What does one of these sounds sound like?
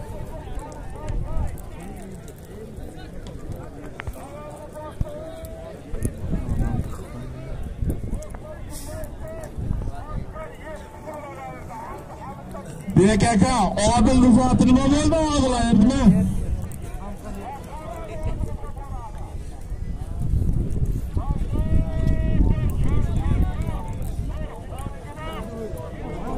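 A large crowd of men murmurs and calls out outdoors.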